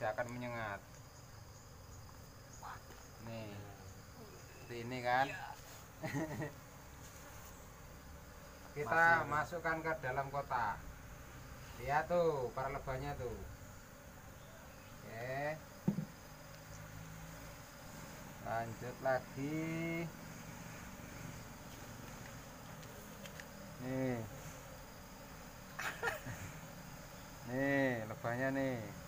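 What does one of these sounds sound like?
A young man talks casually at close range, in short bursts.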